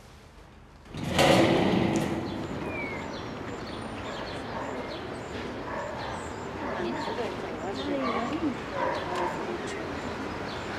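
A crowd of children and women chatters outdoors.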